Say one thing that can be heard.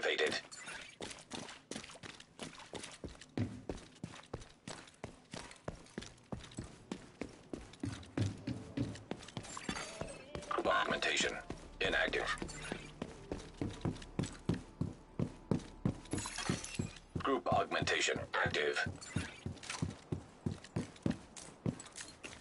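Footsteps run quickly and steadily on a hard floor.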